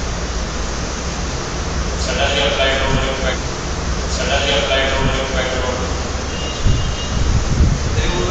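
A man speaks calmly into a microphone, lecturing.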